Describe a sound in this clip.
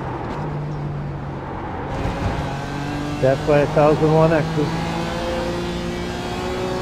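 A racing car engine roars steadily, shifting pitch as the car speeds along the track.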